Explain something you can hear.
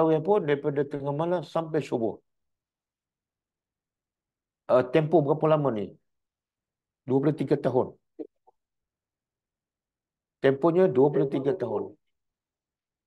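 An older man speaks calmly and with emphasis close to a microphone, in short bursts between pauses.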